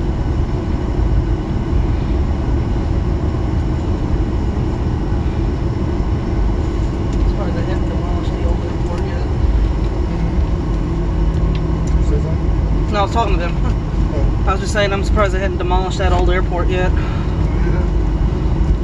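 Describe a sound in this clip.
A jet airliner's engines rumble steadily while it taxis.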